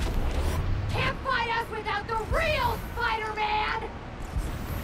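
Several men shout at one another.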